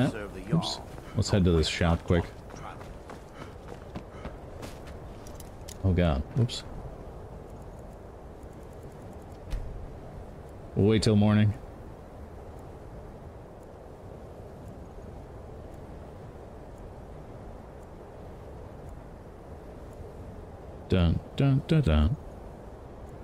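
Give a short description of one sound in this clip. A young man talks casually into a close microphone, in short bursts.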